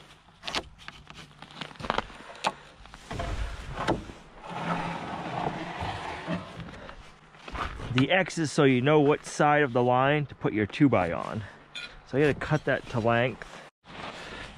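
A wooden plank knocks and scrapes as it is moved.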